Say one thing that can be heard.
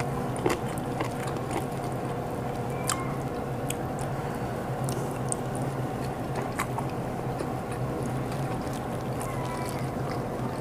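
A woman chews food close to the microphone, with soft wet mouth clicks.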